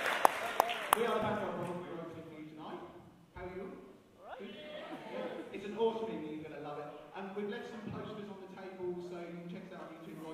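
A young man talks with animation through a microphone and loudspeakers in an echoing hall.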